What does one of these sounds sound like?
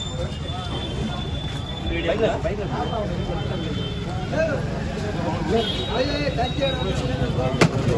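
A large metal pot scrapes and clanks.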